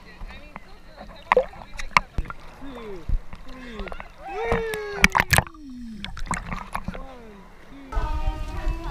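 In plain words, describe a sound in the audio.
Water laps and splashes close by.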